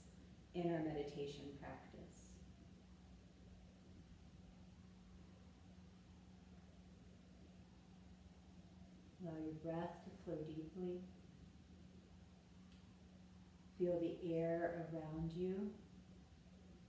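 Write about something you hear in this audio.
A woman speaks calmly and slowly, with long pauses, close by.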